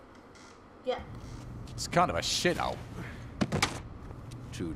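A young man speaks.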